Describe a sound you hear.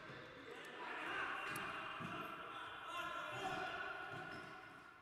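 Sneakers squeak on a hard indoor court in a large echoing hall.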